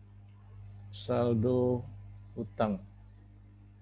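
A man speaks briefly through a computer microphone in an online call.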